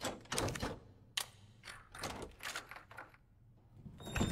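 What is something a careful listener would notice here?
A key slides into a door lock and turns with metallic clicks.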